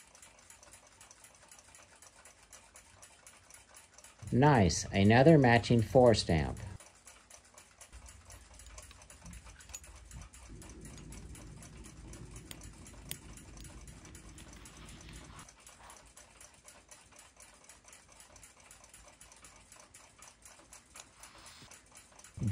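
Metal tweezers tap and click faintly against small brass clock parts.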